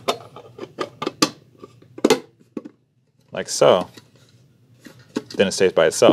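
A metal tin clinks and rattles as hands handle it.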